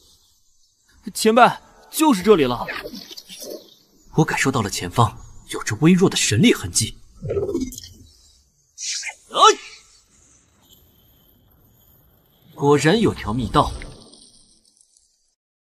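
A young man speaks calmly and closely.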